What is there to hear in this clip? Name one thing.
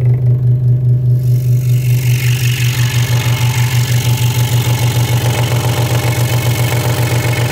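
A scroll saw hums and chatters steadily as it cuts through wood.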